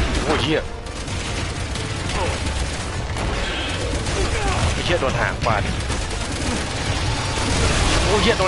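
A man talks with animation into a nearby microphone.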